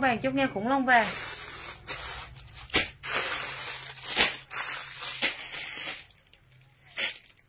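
Fabric rustles as clothing is handled.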